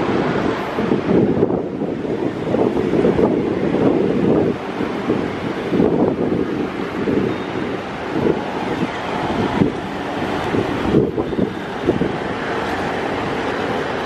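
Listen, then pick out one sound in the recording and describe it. Traffic hums in the street outdoors.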